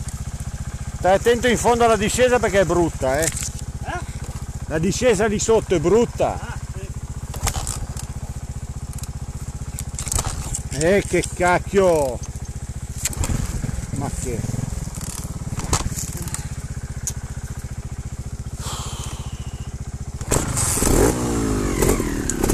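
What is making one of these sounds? A motorbike engine revs up sharply in short bursts.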